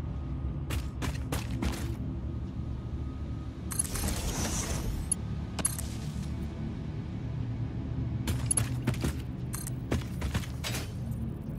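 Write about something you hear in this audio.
Parts snap into place with short, sharp clicks.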